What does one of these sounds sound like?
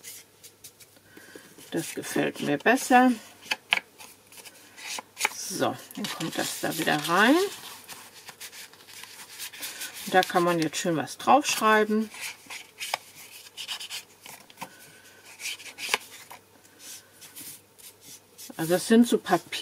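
A sponge dabs on an ink pad.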